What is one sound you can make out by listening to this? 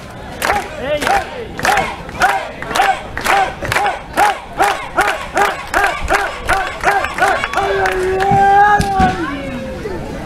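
A crowd chants loudly.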